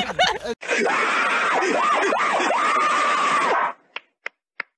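A cartoon face laughs loudly.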